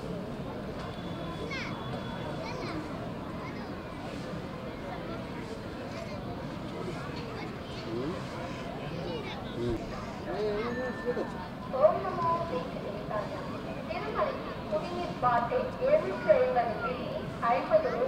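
Voices of a crowd murmur in the background outdoors.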